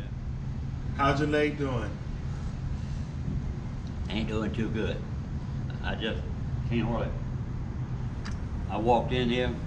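An elderly man talks calmly a short distance away.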